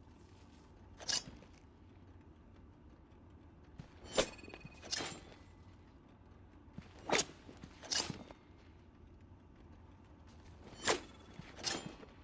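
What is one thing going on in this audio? A spinning blade whooshes through the air several times in short, sharp bursts.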